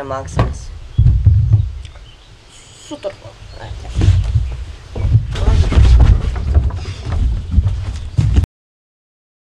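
A young boy speaks nearby, outdoors.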